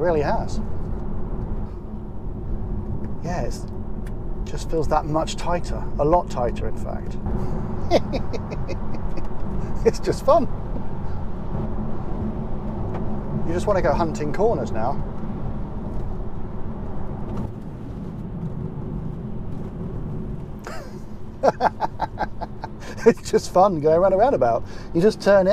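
A car's tyres hum steadily on the road.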